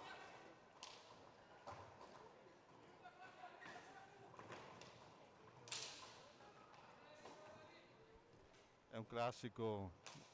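Roller skates rumble and scrape on a hard floor in a large echoing hall.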